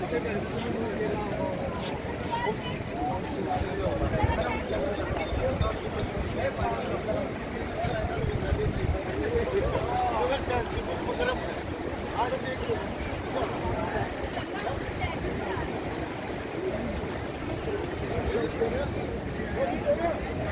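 A river rushes past outdoors.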